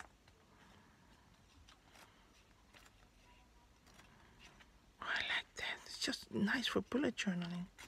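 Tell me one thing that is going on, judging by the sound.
Stiff card flaps softly as fingers fold it open.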